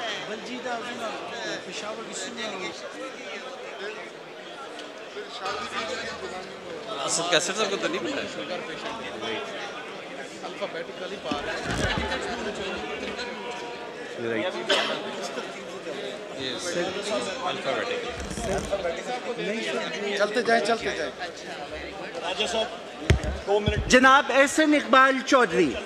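Several men talk and murmur in the background of a large hall.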